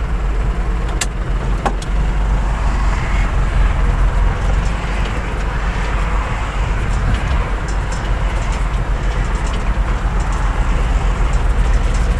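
A tractor cab rattles and clatters as it rolls over rough ground.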